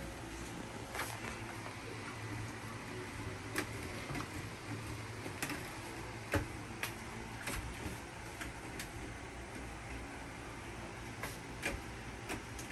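Plastic shelves click and knock against a metal pole as they are fitted.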